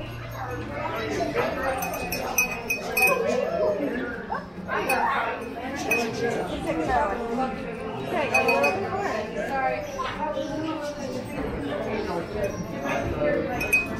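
Men and women chatter nearby in a large echoing room.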